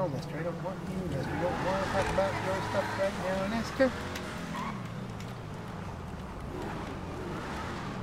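A car engine revs as the car drives off.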